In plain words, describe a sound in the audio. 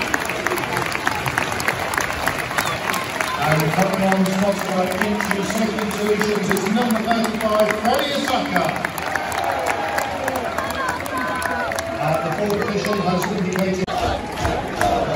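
A large crowd of fans sings and chants loudly in an open stadium.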